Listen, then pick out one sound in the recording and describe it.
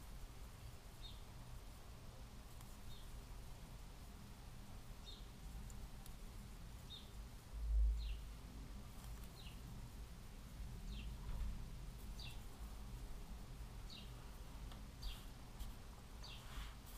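A crochet hook ticks softly as it pulls yarn through stitches.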